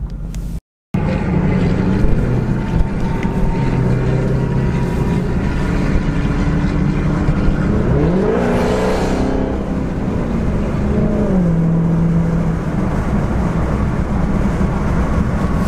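Tyres rumble steadily on a road.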